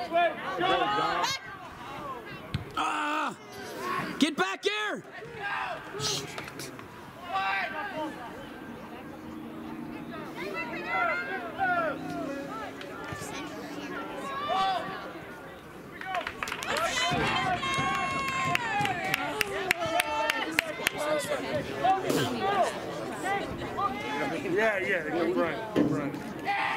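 Spectators and players shout and call out across an open outdoor field.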